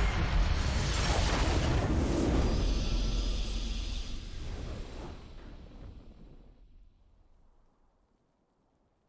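A booming victory fanfare from a video game swells and then slowly fades away.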